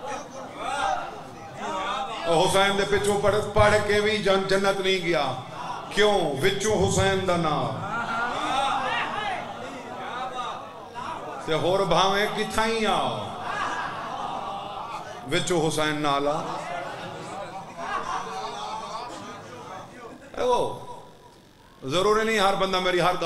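A young man speaks passionately into a microphone, his voice loud and echoing through loudspeakers.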